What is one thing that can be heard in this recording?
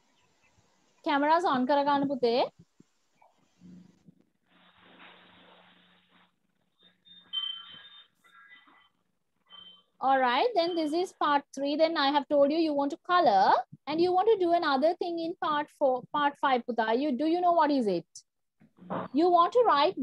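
A woman speaks clearly over an online call, explaining calmly.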